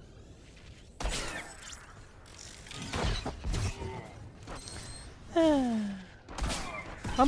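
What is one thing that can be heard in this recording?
Laser blasts fire and zap in quick bursts.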